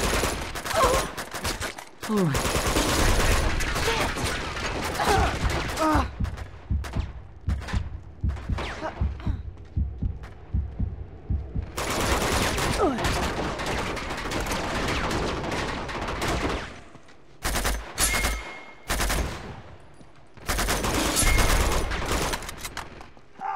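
Rifle gunfire crackles in rapid bursts.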